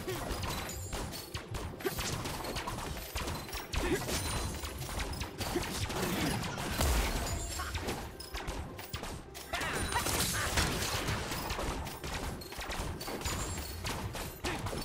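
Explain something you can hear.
Game spell effects whoosh and crackle during a fight.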